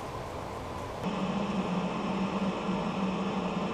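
A wood lathe motor starts up and hums as it runs.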